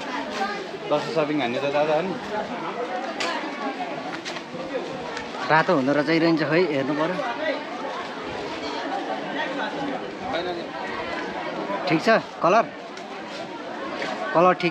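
Voices of a crowd chatter outdoors in the background.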